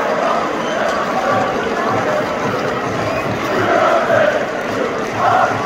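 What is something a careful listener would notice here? A large stadium crowd sings and chants loudly in unison outdoors.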